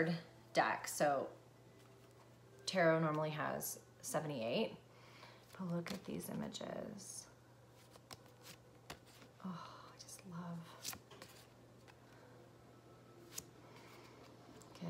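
Playing cards rustle and tap as a young woman shuffles them in her hands.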